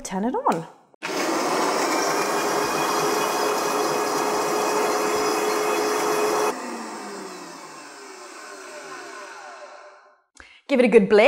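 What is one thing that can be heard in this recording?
A blender whirs loudly, then winds down.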